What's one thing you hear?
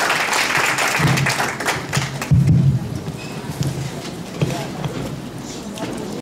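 A man speaks through a microphone over loudspeakers in a large hall.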